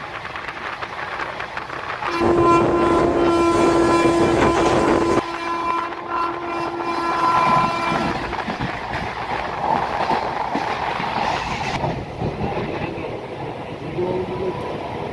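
A train rumbles and clatters along the rails.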